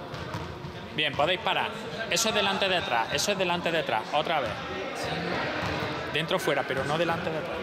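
A young man speaks with animation in a large echoing hall.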